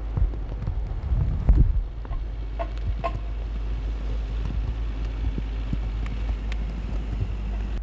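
A car drives slowly over snow toward the listener.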